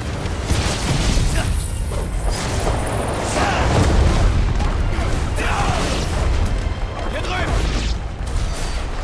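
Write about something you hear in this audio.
A sword clashes and slashes in a fight.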